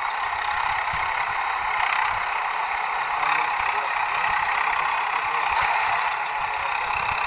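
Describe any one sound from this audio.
Muddy water splashes and churns under a tractor's wheels.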